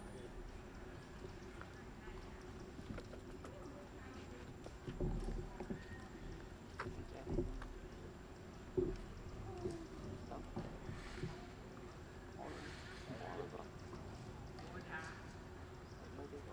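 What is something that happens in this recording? A monkey slurps and sucks from a juice box.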